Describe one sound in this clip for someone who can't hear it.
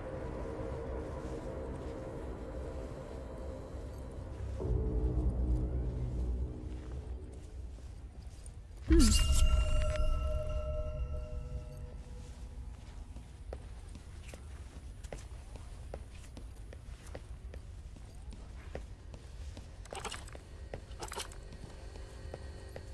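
Light footsteps patter quickly across a hard floor.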